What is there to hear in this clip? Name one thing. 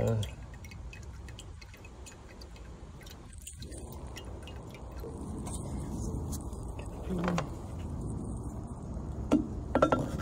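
Small tools and metal parts click and clink close by.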